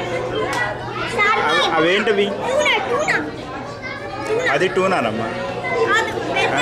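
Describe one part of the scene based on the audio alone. A child talks excitedly close by.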